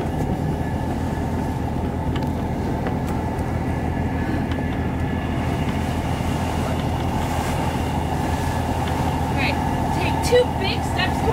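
Strong wind blows across the microphone outdoors.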